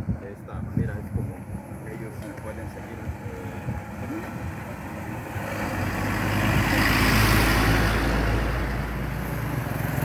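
A truck approaches and roars past close by.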